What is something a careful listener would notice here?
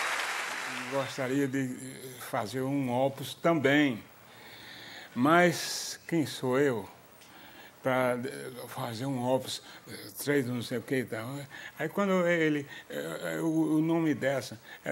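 An elderly man speaks calmly and with animation, close by.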